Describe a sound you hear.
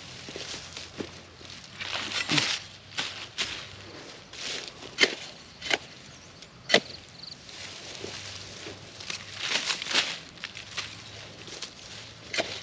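A hoe scrapes and thuds into dry soil.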